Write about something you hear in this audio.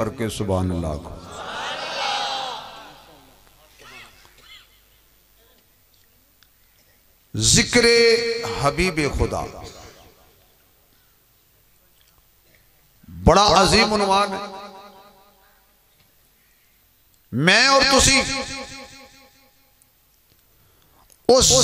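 A man chants loudly through a loudspeaker in long bursts with pauses between them.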